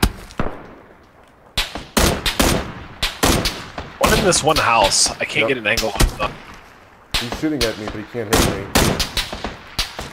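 A rifle fires single gunshots.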